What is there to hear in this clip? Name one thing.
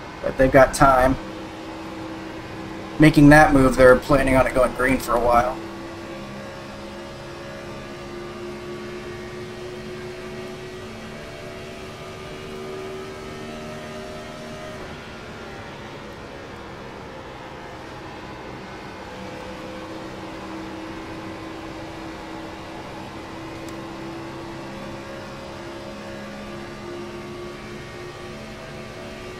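A race car engine drones steadily from inside the cockpit.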